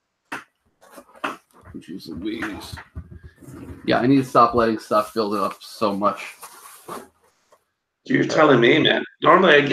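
A cardboard box rustles and scrapes.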